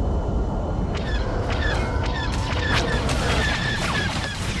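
Laser cannons fire in rapid sharp bursts.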